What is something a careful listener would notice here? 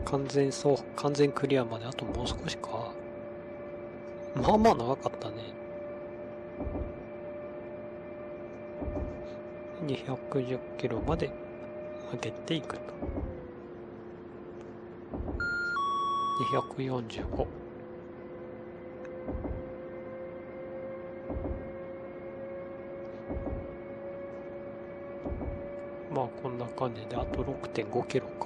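A train's electric motor hums steadily, its pitch shifting slightly.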